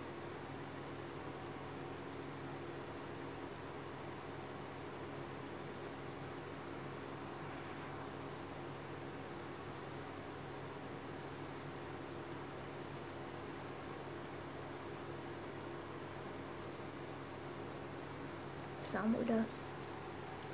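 A metal crochet hook clicks faintly against a ring as thread is pulled through.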